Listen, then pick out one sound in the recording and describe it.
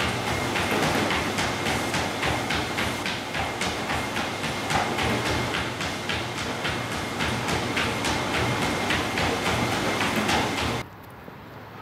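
A dog's paws patter quickly on a treadmill belt.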